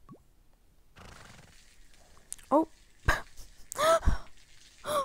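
Water sprays from a hose.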